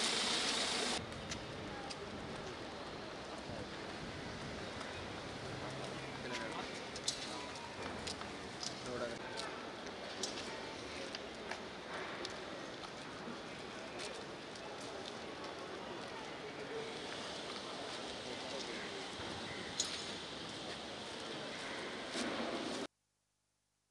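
A crowd of men murmurs nearby outdoors.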